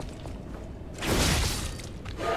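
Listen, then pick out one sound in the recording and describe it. A blade strikes with a sharp metallic clash.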